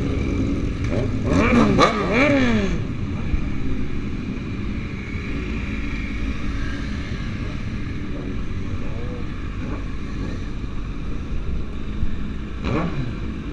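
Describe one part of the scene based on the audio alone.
Motorcycle engines rev sharply nearby.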